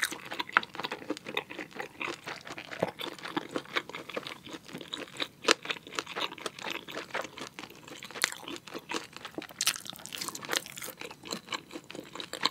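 A young woman chews wetly and loudly, close to a microphone.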